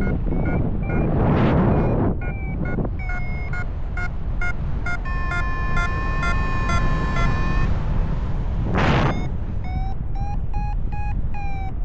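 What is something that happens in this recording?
Wind rushes and buffets loudly past in the open air.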